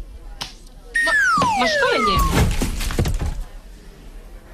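A young woman speaks with emotion nearby.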